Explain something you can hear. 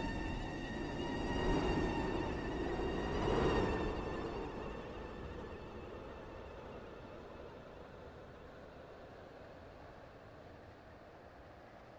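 A train rumbles along the tracks and fades into the distance.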